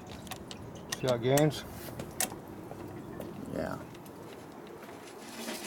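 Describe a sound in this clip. A motorcycle brake lever clicks as it is squeezed and released.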